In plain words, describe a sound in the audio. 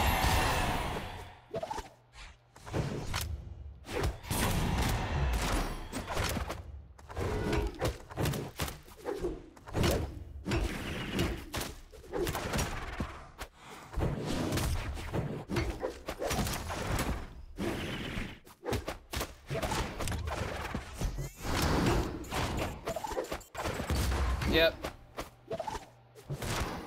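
Cartoon fighters trade blows with quick, punchy hits and whooshes.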